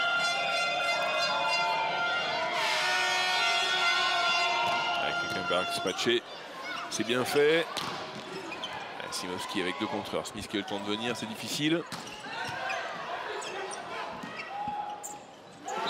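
A large crowd cheers and makes noise throughout.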